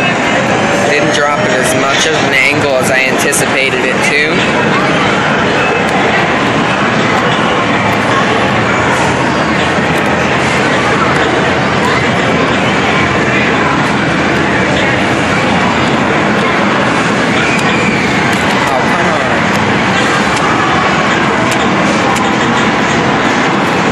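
Arcade machines beep, chime and play music loudly all around.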